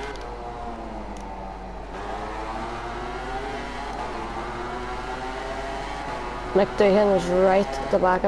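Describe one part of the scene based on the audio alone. A motorcycle engine drones and whines as the bike speeds along.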